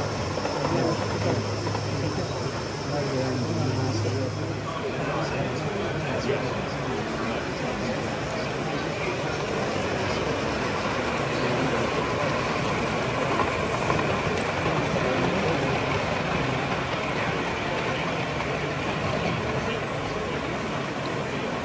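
Many people chatter in a large, echoing hall.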